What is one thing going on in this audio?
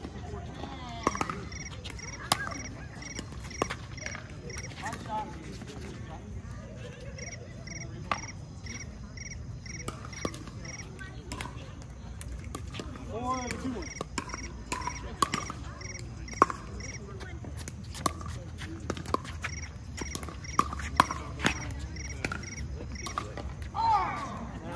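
Paddles strike a plastic ball with sharp pops, back and forth.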